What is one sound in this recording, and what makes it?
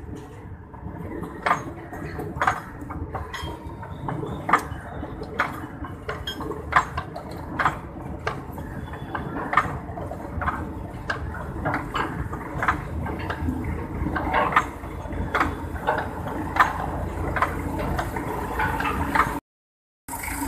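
A small train rumbles past close by.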